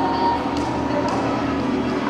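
A man plays a low droning instrument.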